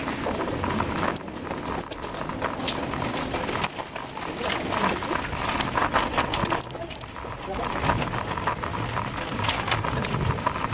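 A bicycle rolls and rattles over a rough path.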